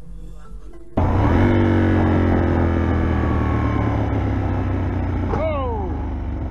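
A sport motorcycle engine runs at speed, its engine note slowly falling.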